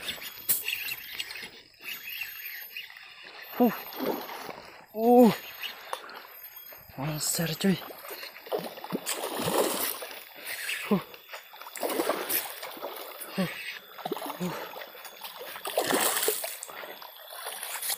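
Water splashes as a fish thrashes near the surface.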